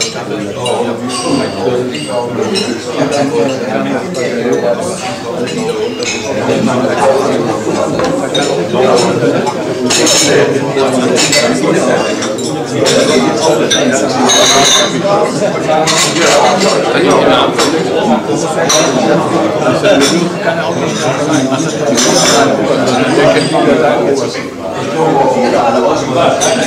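Many men and women chat at once around a room.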